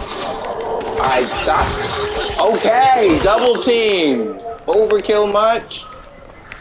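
A zombie growls and snarls loudly up close.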